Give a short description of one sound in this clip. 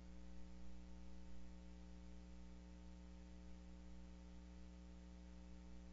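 A steady electrical hum drones throughout.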